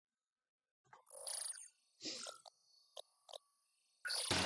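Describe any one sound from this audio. Short electronic interface blips sound as a menu opens.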